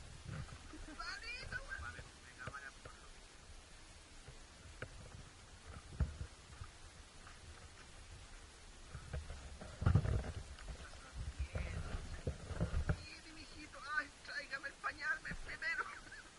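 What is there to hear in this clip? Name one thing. Men talk nearby outdoors.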